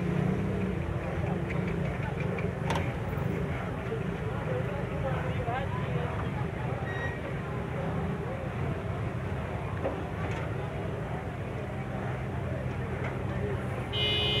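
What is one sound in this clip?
A buffalo munches on dry hay close by.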